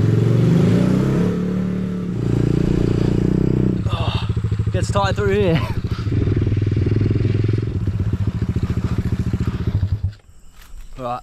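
A dirt bike engine buzzes and revs loudly.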